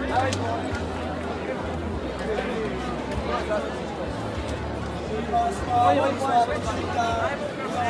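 Young men talk loudly nearby.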